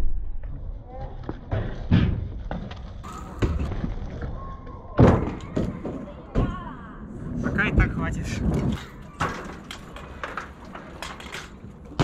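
Bicycle tyres roll over paving stones.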